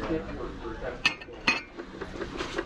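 A ceramic cup clinks against a shelf as it is picked up.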